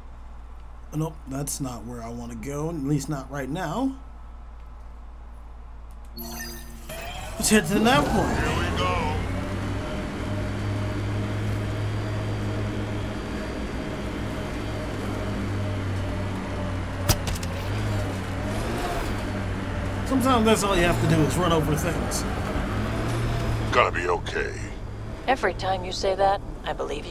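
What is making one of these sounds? A young man talks casually into a headset microphone.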